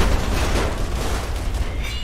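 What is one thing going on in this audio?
An explosion booms with a deep rumble.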